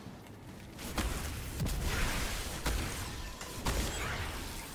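Gunfire and blasts crack in a video game.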